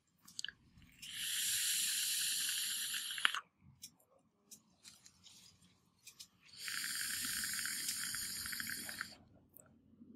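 A vaporizer device crackles and sizzles as it fires.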